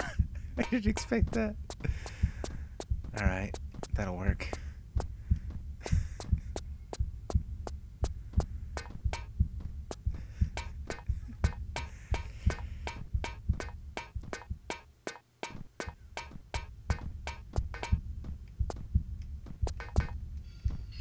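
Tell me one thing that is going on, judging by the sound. Quick footsteps pound steadily on a hard floor.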